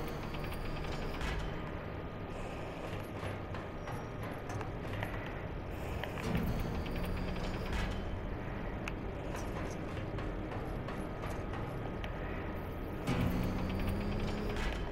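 Large gears turn with a low mechanical hum and clank.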